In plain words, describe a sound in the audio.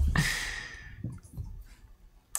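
A game piece taps onto a board.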